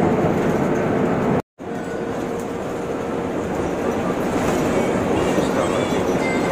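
A vehicle's engine hums steadily from inside the cabin.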